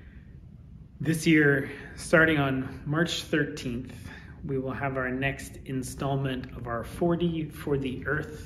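A man speaks calmly and clearly into a microphone.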